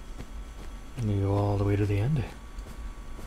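A young man makes a short drawn-out vocal sound close to a microphone.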